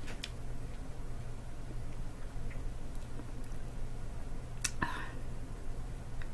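A woman chews and crunches raw broccoli.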